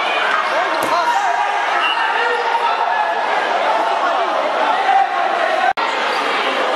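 A large crowd cheers and shouts in an echoing indoor hall.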